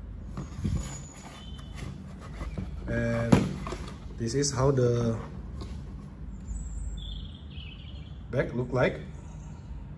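A hollow plastic case knocks and rattles as it is handled.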